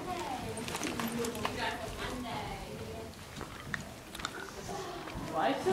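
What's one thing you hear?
Teenagers chatter and call out loudly close by.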